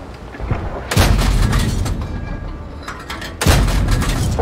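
A tank cannon fires with a loud, sharp boom.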